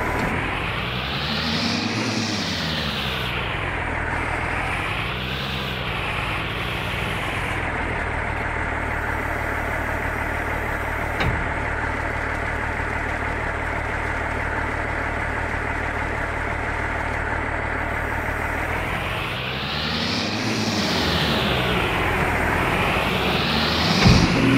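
A loader's engine revs up and down repeatedly.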